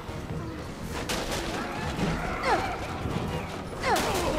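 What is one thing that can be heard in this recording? Boxes topple and clatter to the floor.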